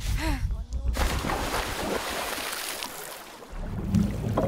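Water splashes loudly as a body plunges in.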